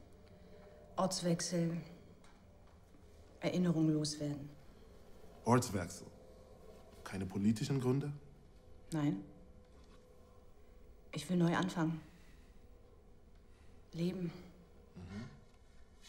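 A woman speaks calmly and quietly nearby.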